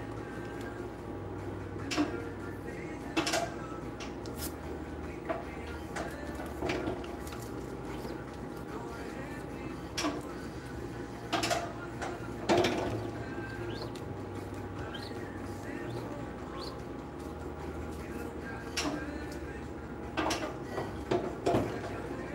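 A machine hums steadily nearby.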